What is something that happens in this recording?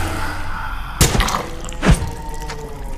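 An axe strikes heavily, thudding with a ringing crash.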